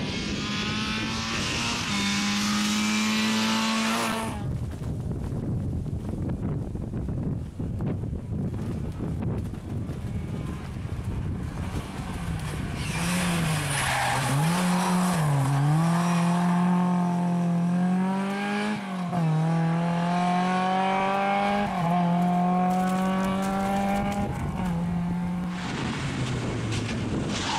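A rally car engine roars at high revs, shifting up through the gears.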